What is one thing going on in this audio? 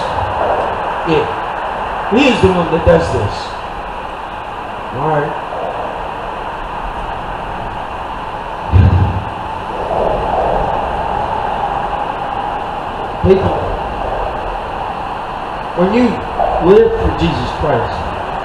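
A young man speaks loudly to a crowd outdoors, with pauses between phrases.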